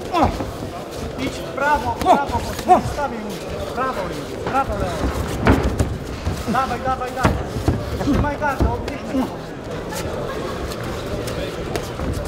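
Boxing gloves thud against a body in quick blows.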